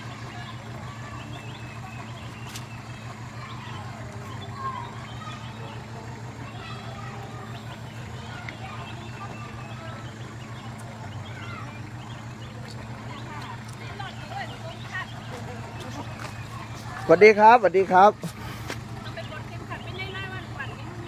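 Several adults chat quietly at a distance outdoors.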